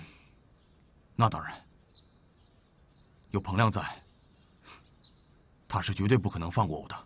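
A young man answers in a low, firm voice.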